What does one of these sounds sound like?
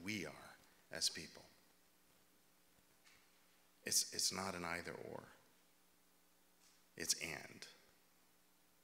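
A middle-aged man speaks calmly into a microphone, heard through a loudspeaker in a large hall, with pauses.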